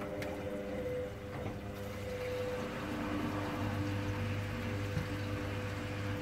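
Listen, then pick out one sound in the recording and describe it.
Wet laundry sloshes and tumbles inside a washing machine drum.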